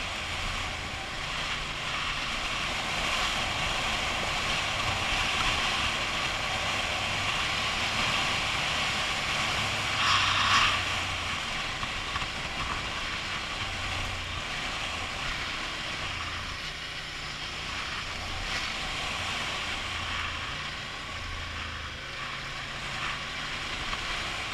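A motorcycle engine hums and shifts in pitch as the bike rides along.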